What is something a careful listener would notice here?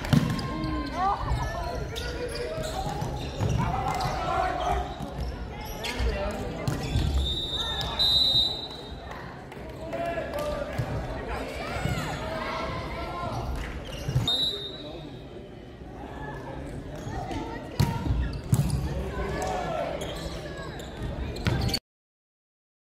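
Men shout and chatter in a large echoing hall.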